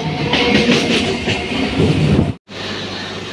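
A passing train rushes by close up with a loud roar.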